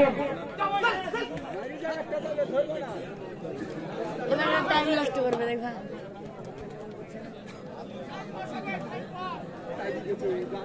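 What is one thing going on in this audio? Men nearby shout and call out loudly.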